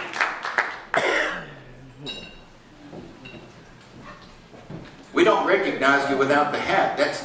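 A man speaks through a microphone to the audience.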